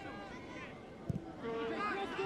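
A foot kicks a football with a dull thud.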